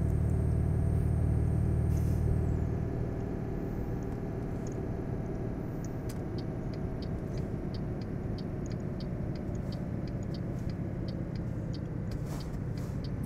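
A truck engine rumbles steadily, louder at first and then settling lower.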